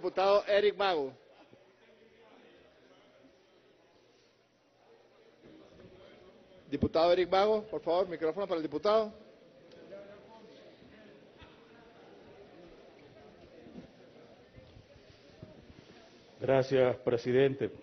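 A man speaks loudly into a microphone, echoing through a large hall.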